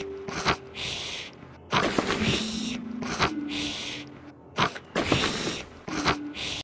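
A cartoon character snores loudly in a steady rhythm.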